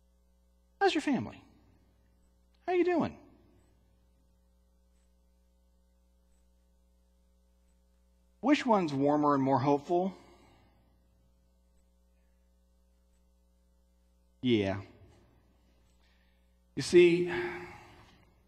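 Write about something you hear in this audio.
A man speaks in short, spaced phrases through a microphone in a large echoing hall.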